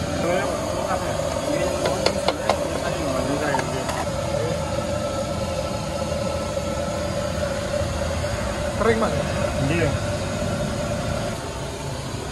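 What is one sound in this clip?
Water boils and bubbles in a pot.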